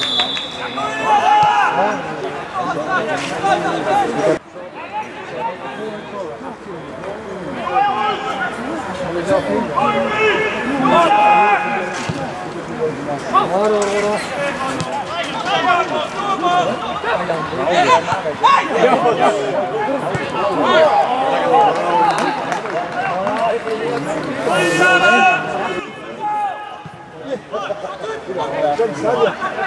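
A crowd of spectators murmurs and cheers outdoors.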